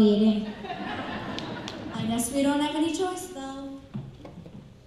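A young girl speaks into a microphone, in a hall with some echo.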